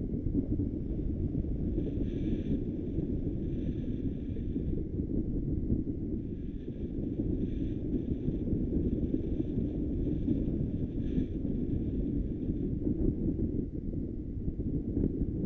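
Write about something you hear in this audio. Wind roars loudly and steadily against a microphone in flight.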